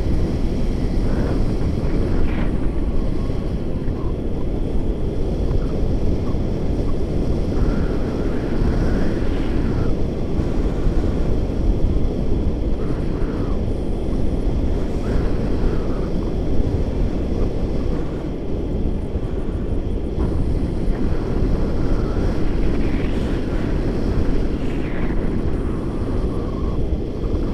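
A man speaks now and then close by, over the wind.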